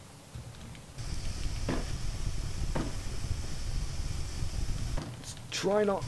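Steam hisses steadily from a vent.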